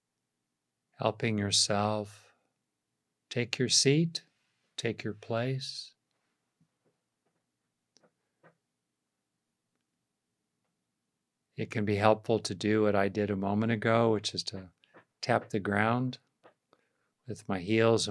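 An older man speaks calmly and close up into a microphone, with pauses.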